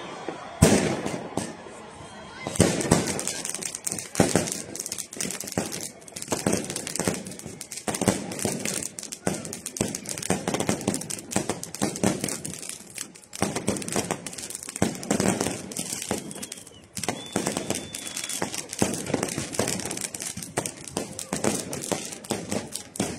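Fireworks crackle and bang repeatedly outdoors.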